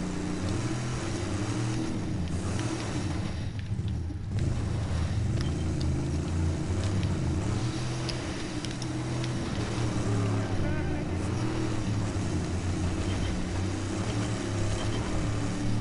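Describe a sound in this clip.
A car engine roars steadily as the car drives.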